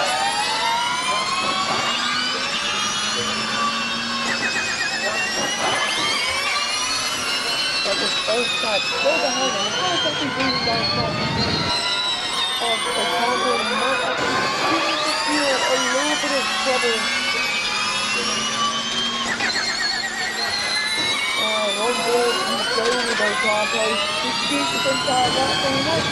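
Racing car engines whine loudly, revving up and down through the gears.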